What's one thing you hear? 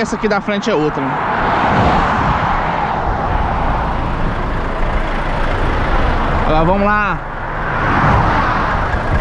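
A lorry's engine rumbles close by while being overtaken.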